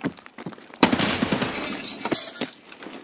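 A rifle fires a loud shot with echoing reverberation.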